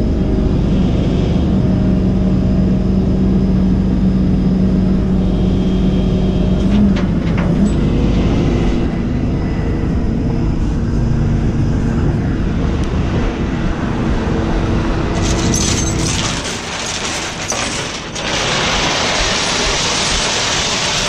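Wind and road noise rush past a moving vehicle at speed.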